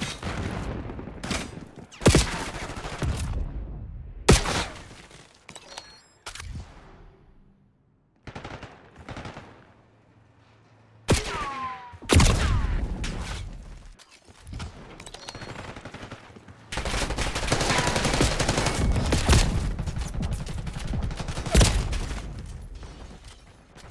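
Gunfire cracks in loud bursts with echoing booms.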